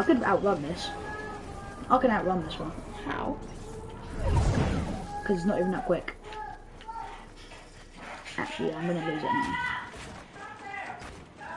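A teenage boy talks with animation close to a microphone.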